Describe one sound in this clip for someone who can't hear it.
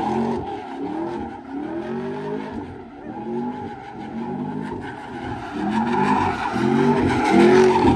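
A car engine revs hard and roars in repeated bursts.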